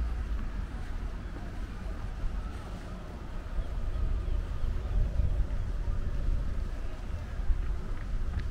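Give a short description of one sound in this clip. Wind rumbles and buffets loudly outdoors.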